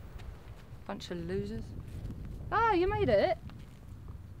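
A woman talks outdoors.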